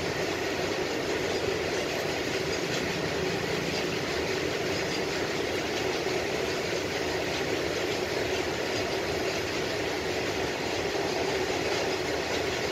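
Traffic hums steadily in the distance.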